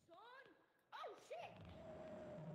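A creature shrieks up close.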